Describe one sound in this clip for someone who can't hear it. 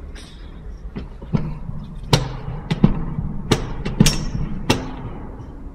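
A hand knocks and bumps against a metal rail.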